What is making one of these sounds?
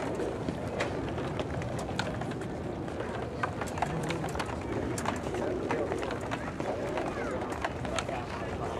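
A crowd of adults murmurs outdoors.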